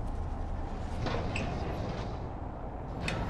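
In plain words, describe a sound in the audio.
A heavy metal drawer slides open with a scraping rattle.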